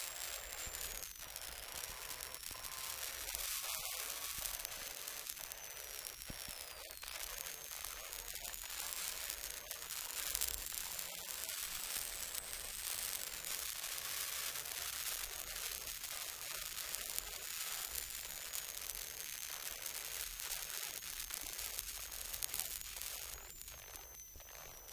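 Gravel and stones rattle against the underside of a car.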